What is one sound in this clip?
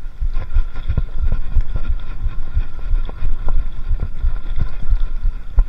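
A bicycle rattles and clatters over a bumpy dirt trail.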